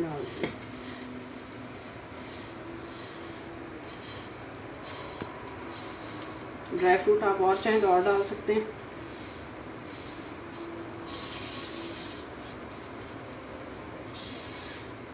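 A spatula scrapes and pushes crumbly food out of a metal pan.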